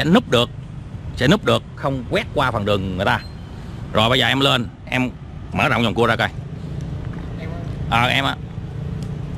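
A man speaks close by, explaining with animation.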